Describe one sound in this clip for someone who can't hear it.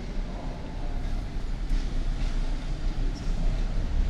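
Footsteps tap on paving stones close by.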